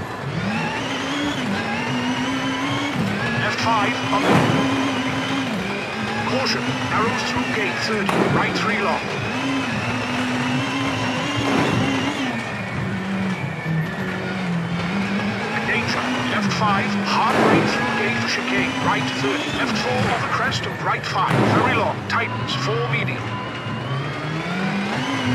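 A rally car engine revs high and drops as gears change.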